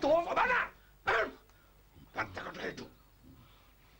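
A second man answers in a raised voice.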